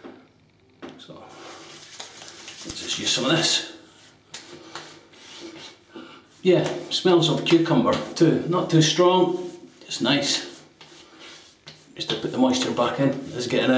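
Hands rub lotion into skin on a face.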